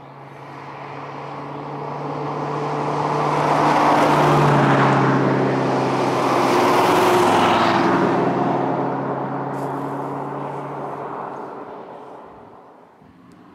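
A sports car accelerates up a road and passes close by.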